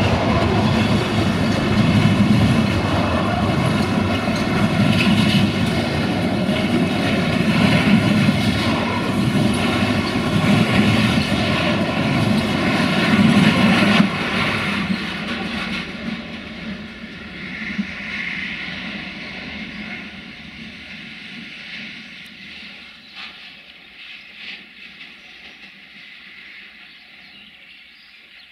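A long freight train rumbles loudly past close by, then fades into the distance.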